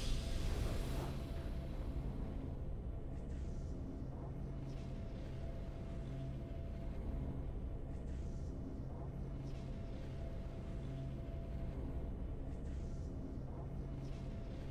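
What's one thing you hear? Soft, steady game music plays after a victory chime.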